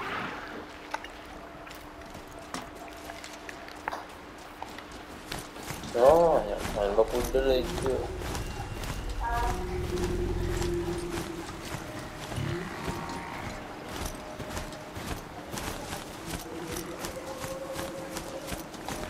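Metal hooves clatter rhythmically on the ground at a gallop.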